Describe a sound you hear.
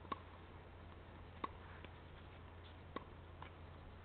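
A tennis ball bounces several times on a clay court.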